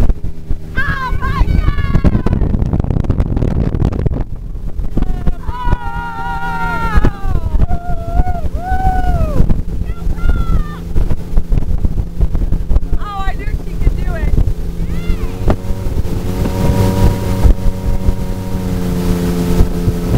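Water churns and splashes in a boat's wake.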